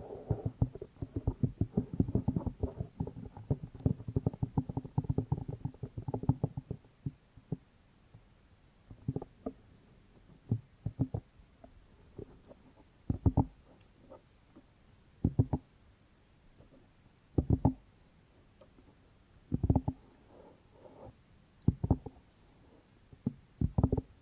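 Fingers tap and scratch rapidly on a microphone very close up.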